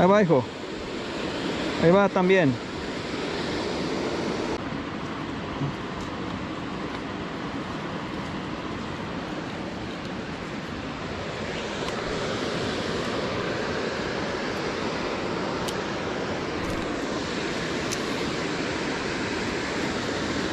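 Water flows steadily nearby.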